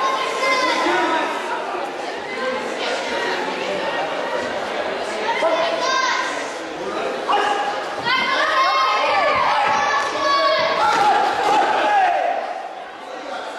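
A crowd of children and adults cheers and shouts in a large echoing hall.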